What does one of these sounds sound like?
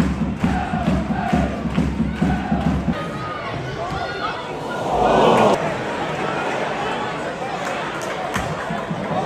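A large crowd murmurs and shouts, swelling briefly into a roar.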